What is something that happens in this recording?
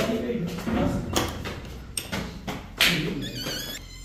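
A metal door bolt slides and clicks open.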